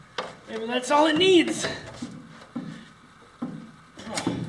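A wooden chair creaks as a man sits and shifts on it.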